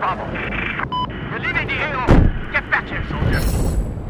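Explosions boom.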